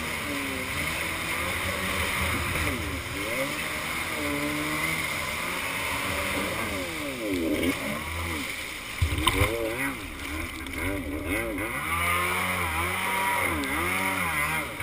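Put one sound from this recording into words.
Water sprays and splashes against a jet ski's hull.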